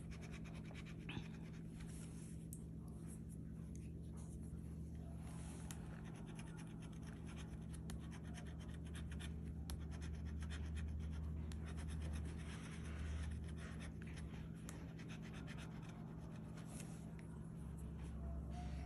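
A metal tool scratches rapidly across a card.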